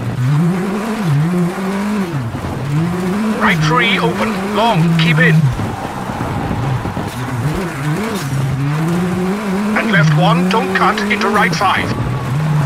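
A rally car engine roars, revving up and down as the gears shift.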